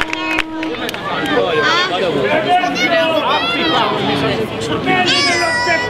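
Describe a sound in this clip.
A crowd of men and women cheers and shouts loudly.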